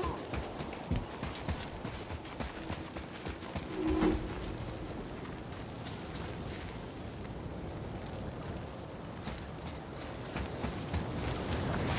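Heavy footsteps crunch on rocky ground.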